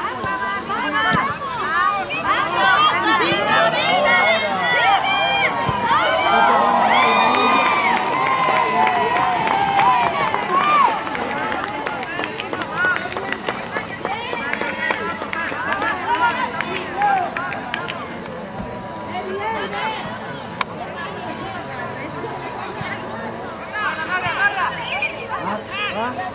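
Children shout and call out across an open playing field.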